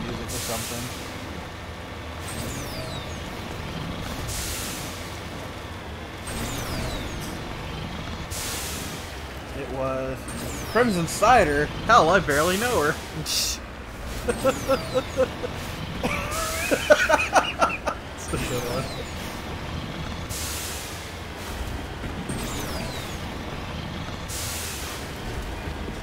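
A vehicle engine hums steadily as it drives over rough ground.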